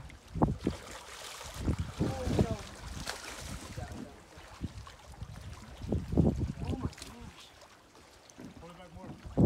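A fish splashes and thrashes in water close by.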